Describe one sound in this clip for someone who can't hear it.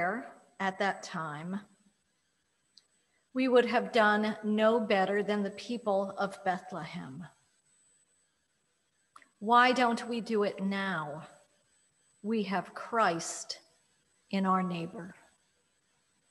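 An older woman reads out calmly into a microphone in an echoing room.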